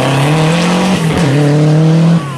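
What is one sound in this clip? A rally car engine shifts gears with a sharp change in pitch.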